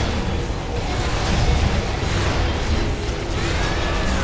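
Laser beams zap.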